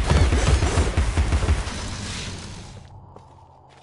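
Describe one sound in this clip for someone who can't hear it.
A hand-cranked gun fires a rapid rattling burst.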